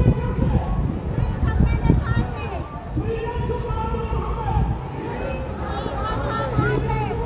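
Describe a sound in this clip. A crowd of men and women chants and shouts outdoors.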